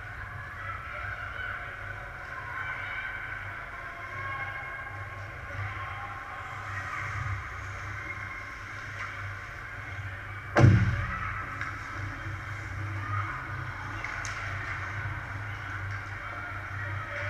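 Skates scrape across ice in a large echoing rink.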